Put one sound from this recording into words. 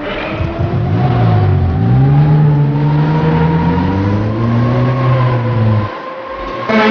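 A small kart engine hums and revs up and down.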